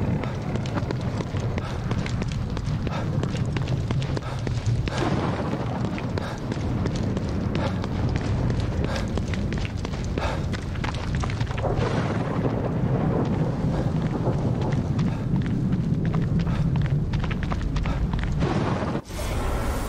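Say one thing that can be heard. Footsteps slap quickly on wet pavement and grass.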